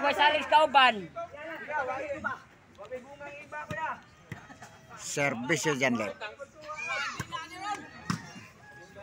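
A crowd of men and boys outdoors shout and cheer loudly.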